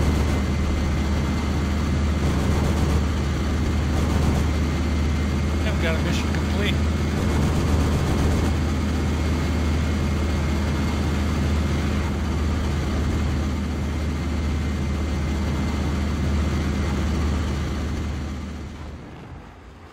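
A propeller plane's engine roars steadily up close.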